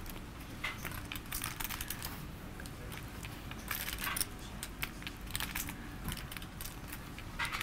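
Poker chips click and clatter as they are handled.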